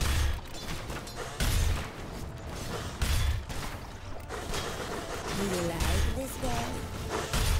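Deep booming impacts hit at intervals.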